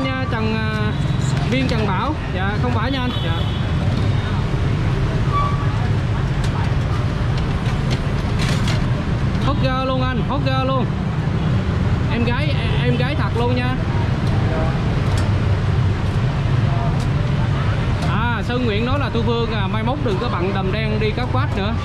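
Traffic rumbles steadily on a busy street outdoors.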